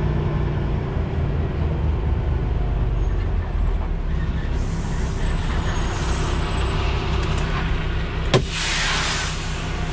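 A truck's diesel engine idles with a low, steady rumble.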